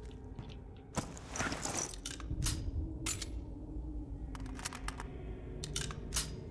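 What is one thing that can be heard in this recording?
A rifle is handled with metallic clicks.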